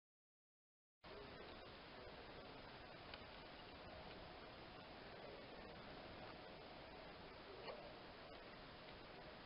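Small birds chirp faintly outdoors.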